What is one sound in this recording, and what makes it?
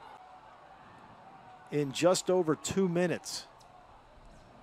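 A crowd cheers in a large stadium.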